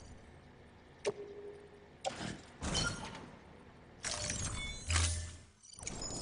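Short electronic beeps and clicks sound.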